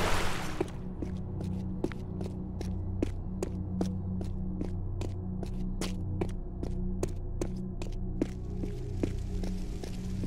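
Quick footsteps run across hard stone.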